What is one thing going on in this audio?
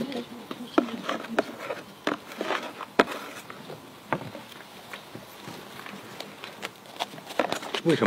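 Paper crinkles and rustles in hands.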